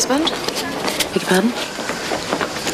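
A woman answers in surprise.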